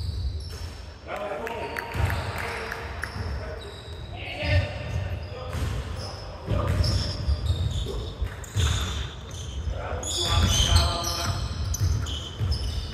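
Men shout and call out to each other across the hall.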